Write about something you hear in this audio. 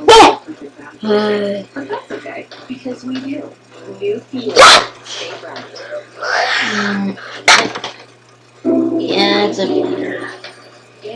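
A young boy talks close to a microphone.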